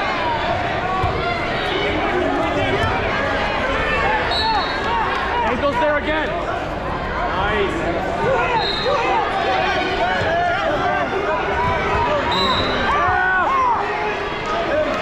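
A crowd of many voices chatters and shouts in a large echoing hall.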